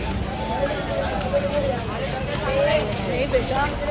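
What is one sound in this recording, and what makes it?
Young men talk excitedly close by.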